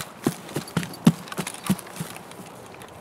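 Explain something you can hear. Footsteps thud and rustle through tall grass.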